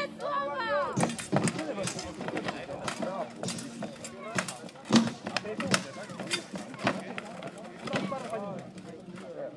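Swords clang and bang against shields and armour.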